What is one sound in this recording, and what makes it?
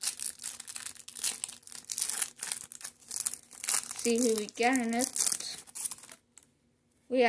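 A plastic wrapper crinkles and tears as it is opened.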